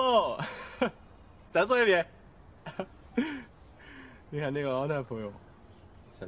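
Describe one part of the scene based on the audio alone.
A young man speaks warmly and playfully, close by.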